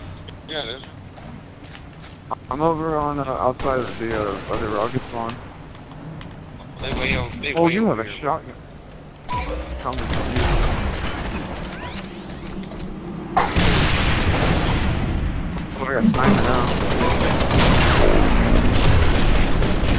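Energy weapons fire in rapid bursts.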